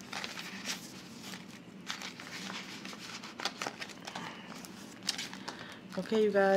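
Plastic sleeves crinkle and rustle as they are handled close by.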